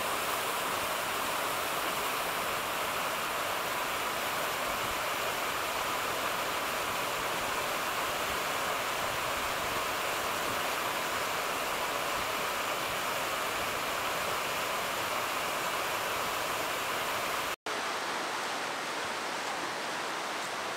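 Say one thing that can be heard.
A mountain stream rushes steadily over rocks.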